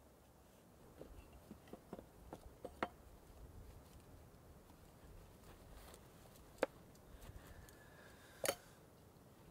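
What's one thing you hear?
Metal cups and pots clink and knock on a small table.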